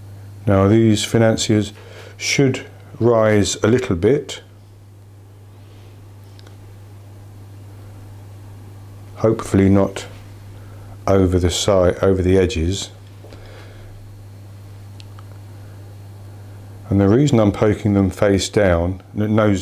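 An elderly man talks calmly, close to a microphone.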